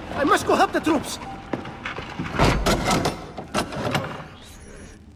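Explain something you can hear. A young man speaks urgently.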